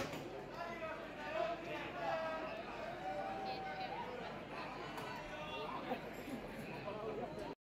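A man talks into a microphone, heard over loudspeakers in a large echoing hall.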